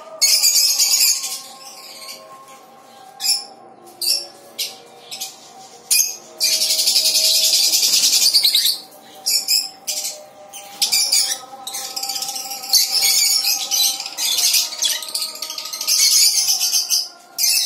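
Many small parrots chirp and screech loudly, close by.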